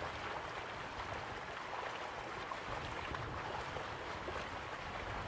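Waterfalls rush and splash steadily in the distance.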